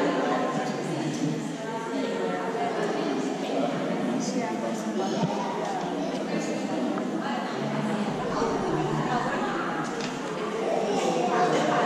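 Several men and women talk at once in an echoing room.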